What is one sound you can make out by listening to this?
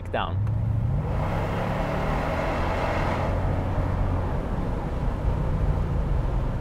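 Wind rushes past loudly as the car drives along.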